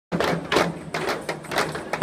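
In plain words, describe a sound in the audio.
Hand drums beat out a fast, steady rhythm.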